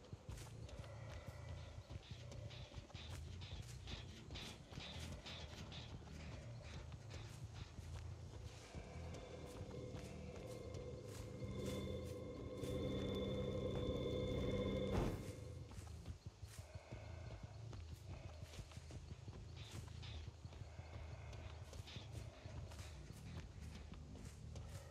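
A man talks into a close microphone with animation.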